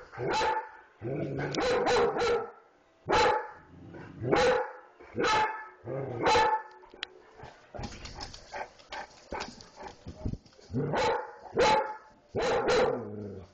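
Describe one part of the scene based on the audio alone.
A small dog yaps excitedly.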